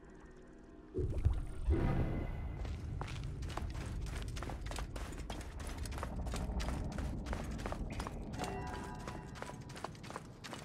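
Footsteps thud up stone stairs at a run.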